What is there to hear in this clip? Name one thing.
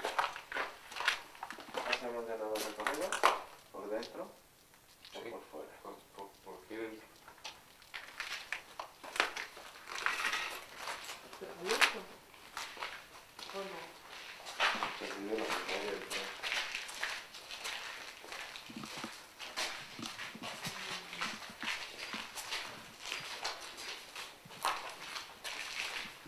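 Several adults talk quietly and excitedly close by.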